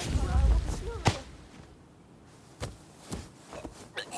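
Blows and thuds land in a brief scuffle.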